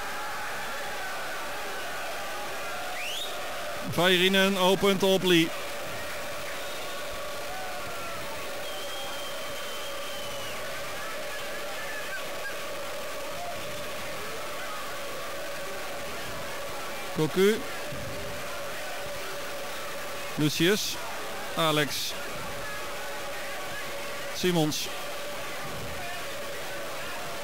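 A large crowd murmurs in a stadium.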